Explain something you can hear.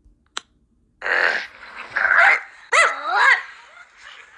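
A puppy whines and yelps in high, rising and falling cries.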